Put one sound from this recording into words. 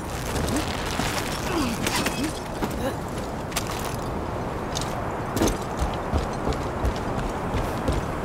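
Footsteps crunch on rock.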